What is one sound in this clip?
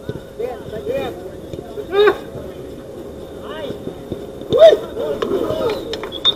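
Young men shout to each other outdoors across a football pitch.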